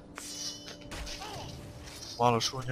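A blade stabs into a body with a dull thud.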